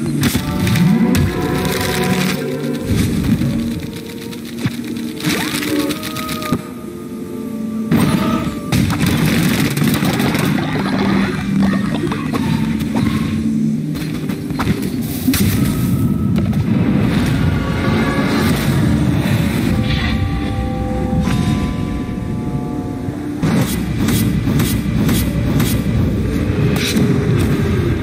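Game music plays steadily throughout.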